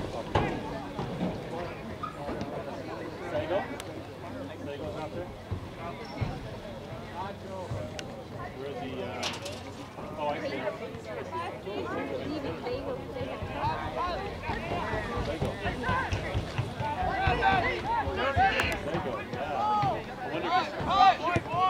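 A crowd of spectators cheers and shouts from the sidelines, outdoors.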